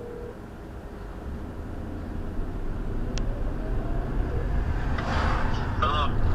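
A car engine revs up as the car pulls away.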